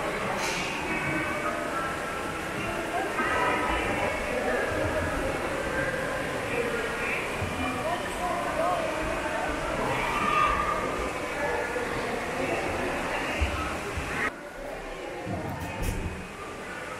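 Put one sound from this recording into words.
Water laps and ripples gently.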